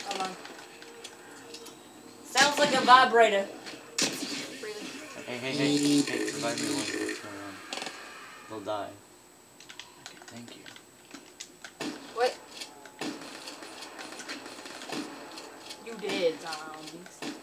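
Video game gunfire crackles in bursts through a television speaker.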